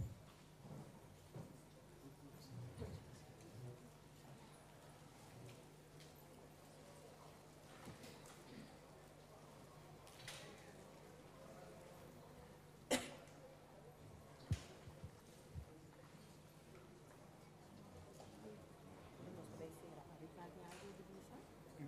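A crowd murmurs quietly in a large room.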